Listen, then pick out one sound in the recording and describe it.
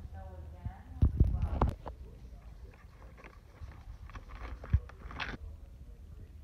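Plastic packaging rustles and crinkles as hands handle it.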